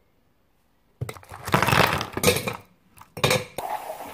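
Ice cubes crack and clatter out of a plastic tray.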